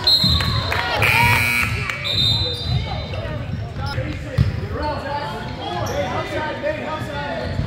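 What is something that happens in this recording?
Young boys call out during play in a large echoing gym.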